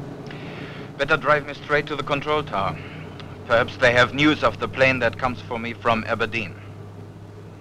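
A young man speaks with animation inside a car.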